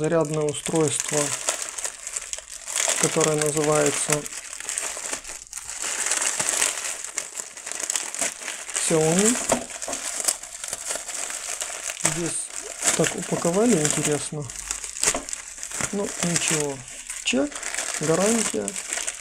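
Plastic wrapping crinkles and rustles close up.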